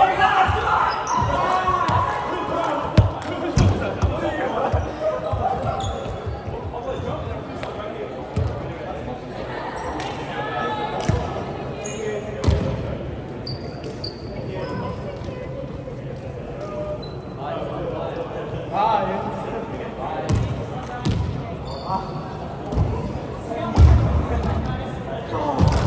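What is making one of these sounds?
Young men call out and chat in a large echoing hall.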